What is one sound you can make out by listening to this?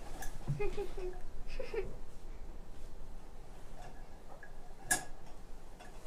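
A metal lantern clinks and rattles as it is hung on a hook.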